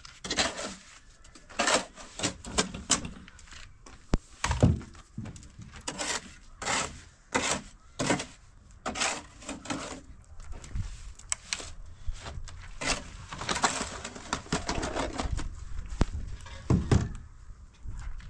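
A hoe scrapes and slaps wet mortar in a metal wheelbarrow.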